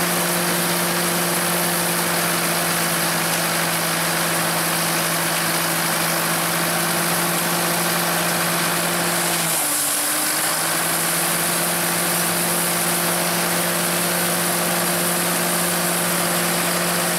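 A harvesting machine rattles and whirs.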